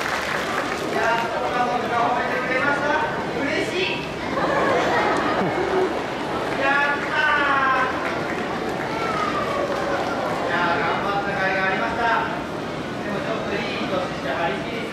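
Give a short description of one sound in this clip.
A man speaks with animation through a loudspeaker, echoing outdoors.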